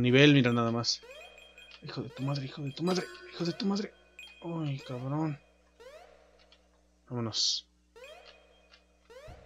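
Short, bright game chimes ring out as coins are picked up.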